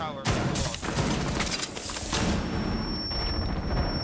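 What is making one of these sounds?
A stun grenade goes off with a loud bang.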